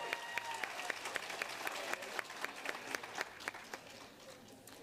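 An audience claps in a large hall, fading away.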